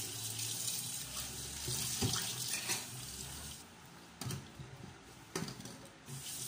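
Dishes clink against a metal sink.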